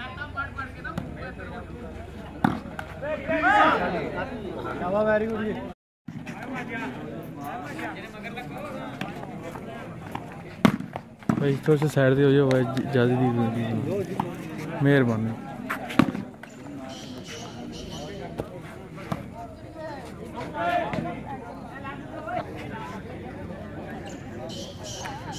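A crowd of men chatters and calls out outdoors.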